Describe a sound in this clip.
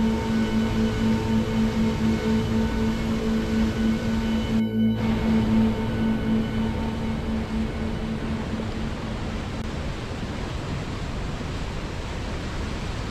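Mountain river rapids roar as water rushes over rocks.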